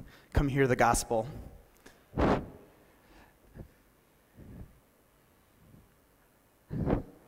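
A man speaks through a microphone in a large hall, in short bursts with pauses.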